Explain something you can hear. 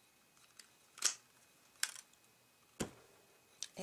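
A paper punch snaps shut with a sharp click.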